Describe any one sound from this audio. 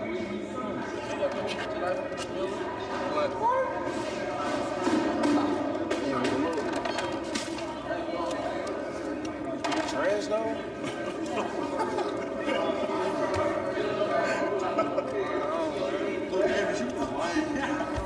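A crowd of men chatters in a large echoing room.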